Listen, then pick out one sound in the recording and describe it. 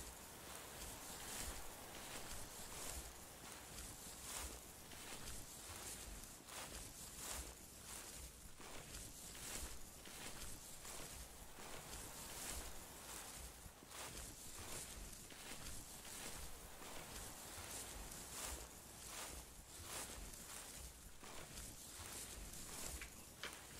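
Wind blows in strong gusts during a snowstorm.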